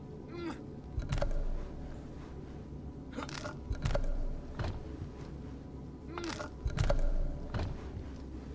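Heavy thuds sound as a climber drops and lands on ledges.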